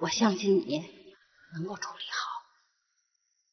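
An elderly woman speaks gently and earnestly nearby.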